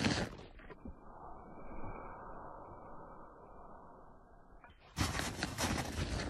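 Paws crunch and scuff through deep snow.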